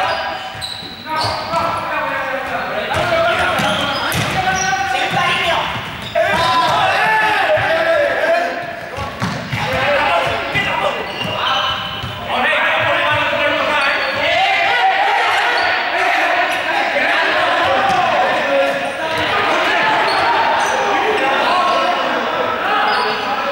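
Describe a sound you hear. Many children shout and chatter in a large echoing hall.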